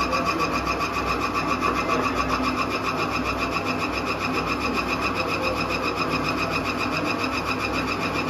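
A stick scrapes and stirs grain in a metal hopper.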